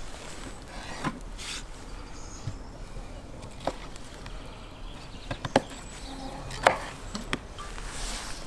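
A knife chops on a wooden cutting board.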